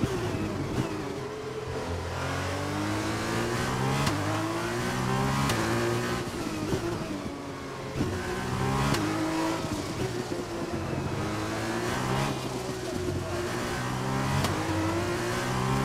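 A racing car engine screams at high revs, rising through the gears and dropping as it shifts down.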